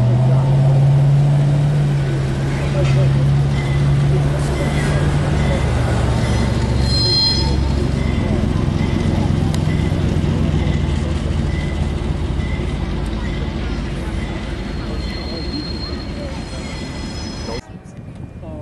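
A diesel locomotive engine rumbles and throbs close by.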